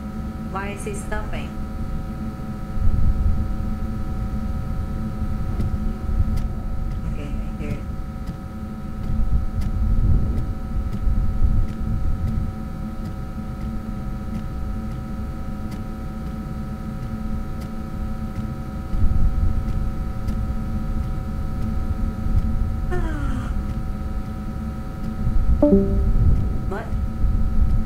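A young woman speaks in short bursts through a microphone.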